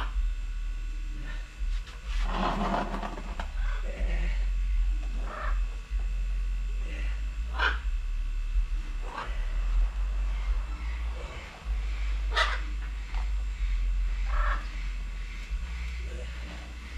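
Plant stems rustle and snap as they are pulled apart by hand.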